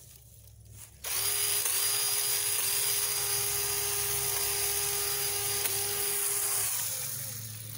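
A cordless drill whirs steadily, then stops.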